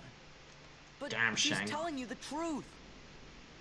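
A young man speaks urgently.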